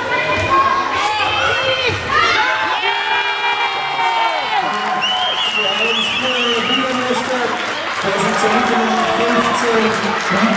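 Children shout and cheer loudly in an echoing hall.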